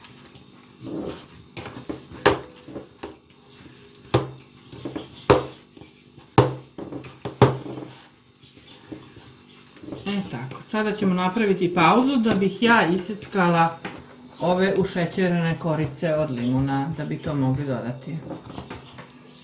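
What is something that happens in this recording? Hands squish and knead a crumbly mixture in a bowl.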